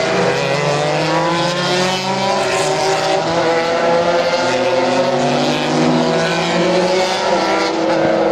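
A race car engine roars loudly, gliding up and down in pitch as the car speeds along the track.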